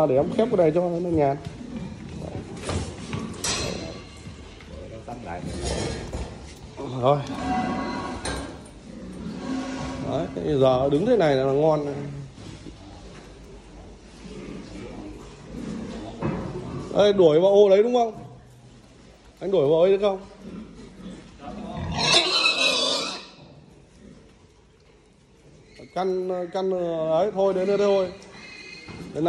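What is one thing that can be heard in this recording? Pigs grunt close by.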